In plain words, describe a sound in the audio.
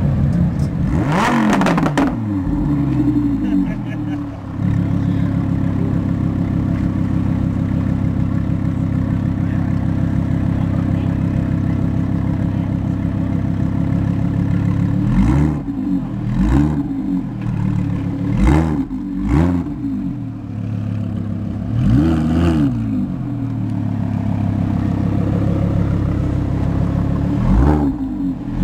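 A sports car engine revs sharply several times.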